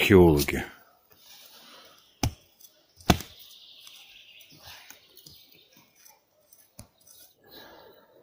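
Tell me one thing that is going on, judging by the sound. A shovel scrapes and digs into soil.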